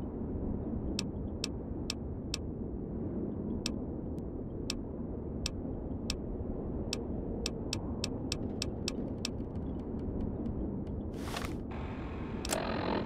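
Short electronic clicks tick quickly, one after another.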